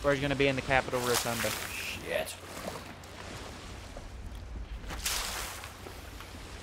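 Water splashes out of a bucket.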